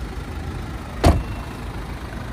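A car door slams shut with a solid thud.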